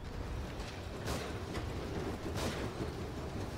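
A revolver fires a sharp shot.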